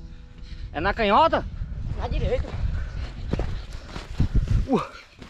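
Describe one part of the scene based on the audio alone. Bare feet thud and scuff in soft sand.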